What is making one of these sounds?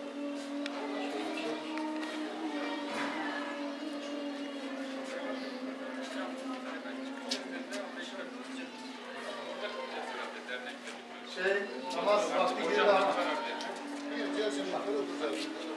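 Several men talk in low voices nearby.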